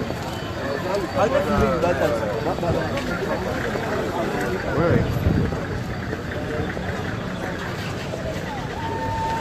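Several men and women talk excitedly nearby outdoors.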